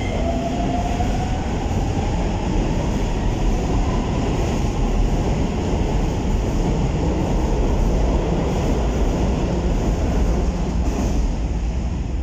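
A train rushes past with a loud, steady rumble and then fades away.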